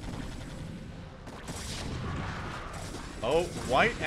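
Gunfire rattles from a game.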